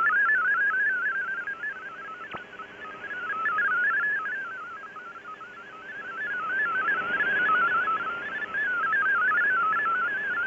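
A shortwave radio plays rapidly hopping, warbling data tones.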